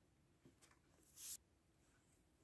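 A book page rustles as it is turned.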